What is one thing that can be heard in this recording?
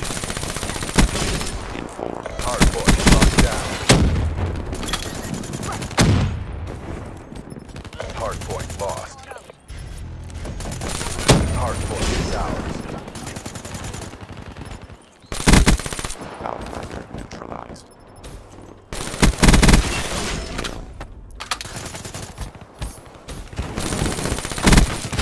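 Gunfire from a video game rattles in short bursts.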